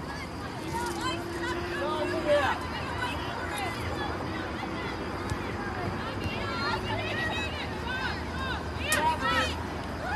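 Young women shout to each other from across an open field at a distance.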